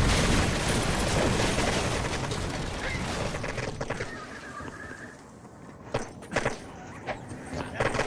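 Gunshots crack.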